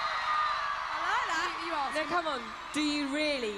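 A young woman speaks into a microphone over loudspeakers.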